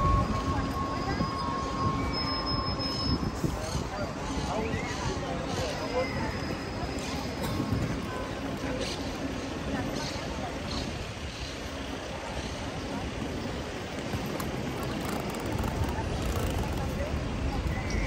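Footsteps of passing walkers shuffle on pavement.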